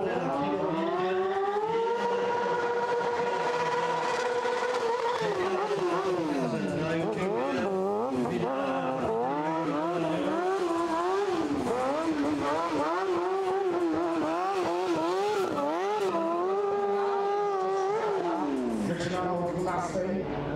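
A motorcycle engine revs up and down loudly, holding steady then dropping and surging again.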